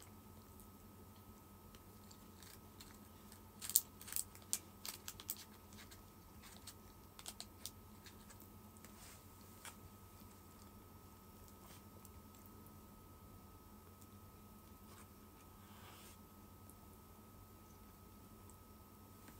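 A young woman chews and slurps food close by.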